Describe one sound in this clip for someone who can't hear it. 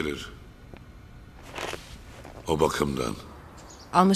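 A man speaks tensely into a phone.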